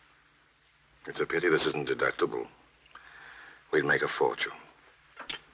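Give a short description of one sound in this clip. A man speaks softly up close.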